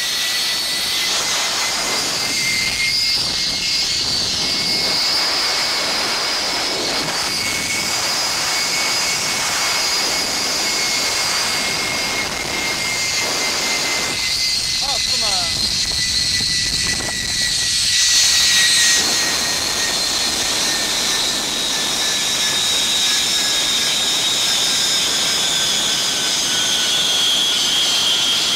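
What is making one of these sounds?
Wind rushes loudly past.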